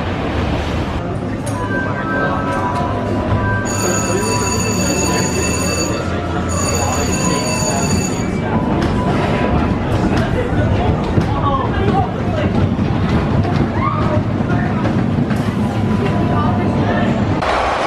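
A coaster car rumbles and clatters along a track.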